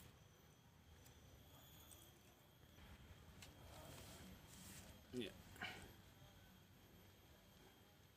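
Metal wire clinks softly as it is uncoiled and bent.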